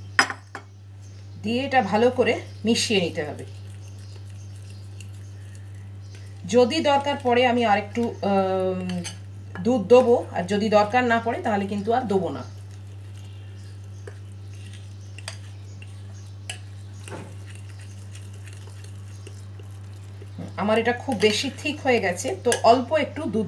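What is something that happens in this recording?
A spoon stirs flour in a glass bowl.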